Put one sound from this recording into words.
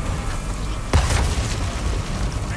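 An explosion booms, loud and close.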